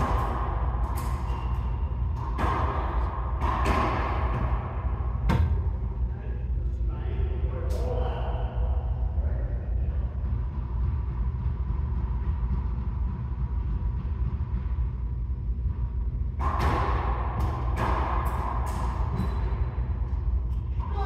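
A ball smacks loudly against the walls and rackets, echoing in a hard enclosed court.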